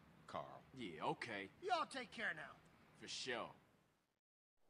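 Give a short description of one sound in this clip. A second man answers briefly.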